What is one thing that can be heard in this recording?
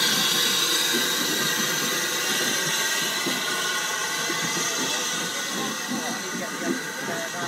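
Railway carriages roll slowly past with a steady rumble and clatter, slowly fading.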